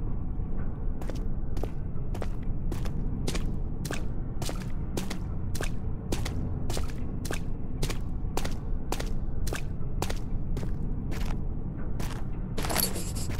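Footsteps tread slowly and evenly on a stone floor.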